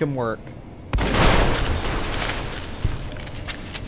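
A gunshot rings out.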